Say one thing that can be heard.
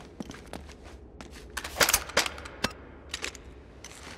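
A gun clicks as it is picked up.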